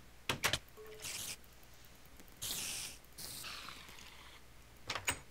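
A spider creature hisses.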